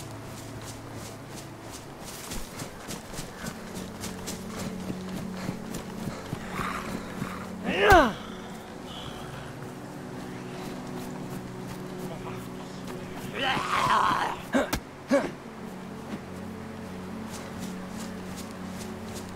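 Footsteps rustle through dry grass at a steady walking pace.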